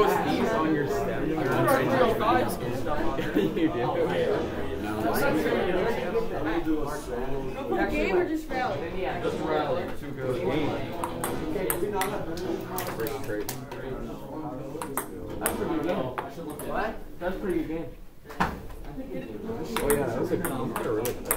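A ping-pong ball clicks against paddles and a table in a quick rally.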